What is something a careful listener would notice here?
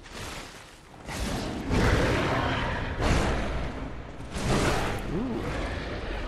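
A huge beast roars and stomps heavily.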